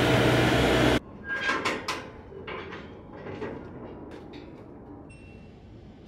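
Metal loading ramps clank as a man lifts them.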